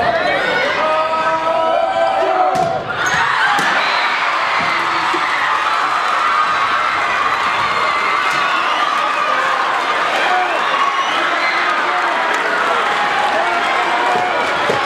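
A crowd cheers and shouts loudly in a large echoing hall.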